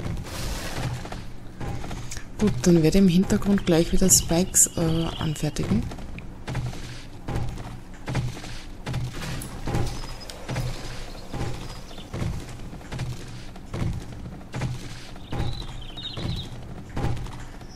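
A tool strikes wood and stone again and again with dull thuds.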